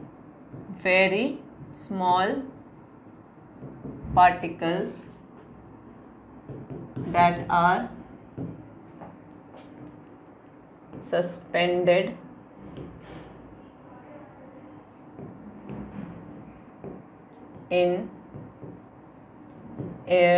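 A young woman speaks calmly in short phrases, close to a microphone.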